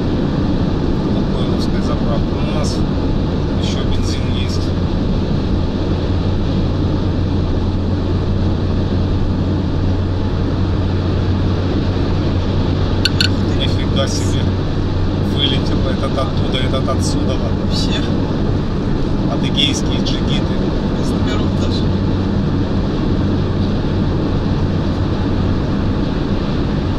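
Tyres roar on the road at high speed.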